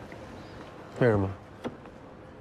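A young man speaks calmly in reply, close by.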